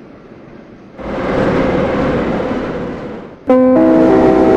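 An oncoming metro train rushes past.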